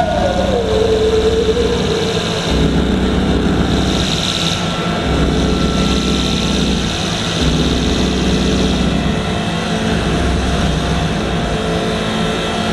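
A man sings into a microphone, amplified through a PA in a large hall.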